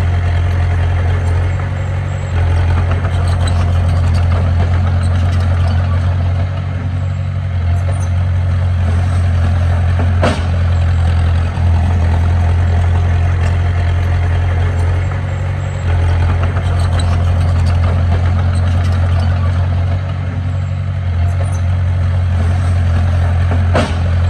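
Soil and clods scrape and tumble under a bulldozer blade.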